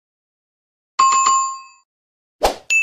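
A bell chimes brightly.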